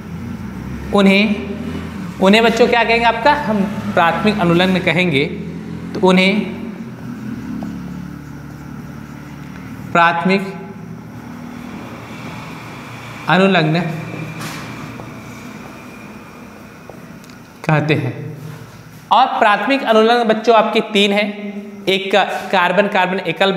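A young man speaks clearly and calmly, close to a microphone.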